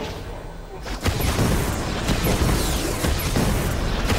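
A laser weapon fires with a loud, roaring blast.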